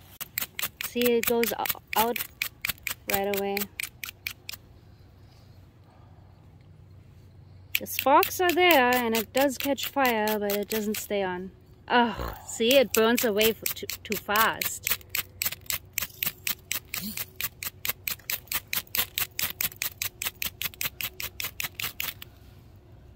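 A metal striker scrapes rapidly and repeatedly against a fire steel.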